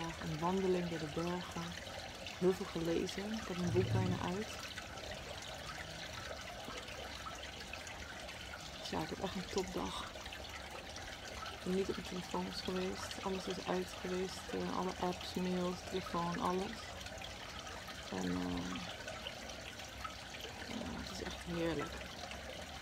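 A young woman speaks softly and calmly, close to the microphone.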